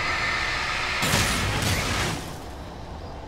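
A bright flare bursts with a loud rushing whoosh.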